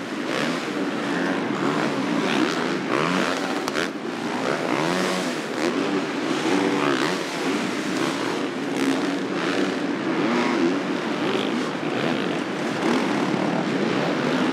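Motorcycle engines roar and rev loudly.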